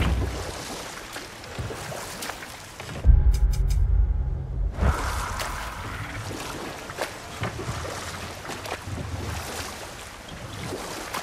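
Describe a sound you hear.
Hooves thud and splash steadily through shallow water and soft ground.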